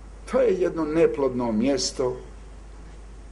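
An elderly man speaks slowly and deliberately into a microphone.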